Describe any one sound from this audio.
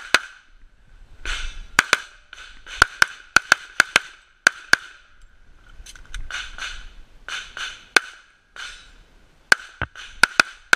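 A pistol fires sharp shots in quick bursts, each ringing briefly outdoors.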